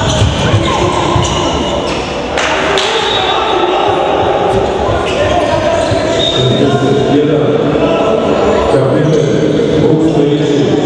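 A handball bounces on the floor.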